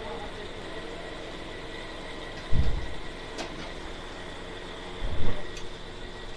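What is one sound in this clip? A metal scoop scrapes and knocks against a steel bowl.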